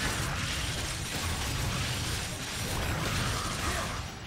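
Magical spell effects whoosh and crackle in quick bursts.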